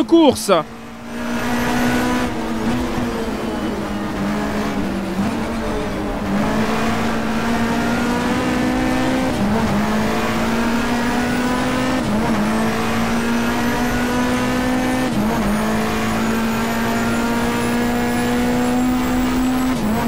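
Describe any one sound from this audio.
A racing car engine roars steadily, revving up through the gears and dropping briefly at each gear change.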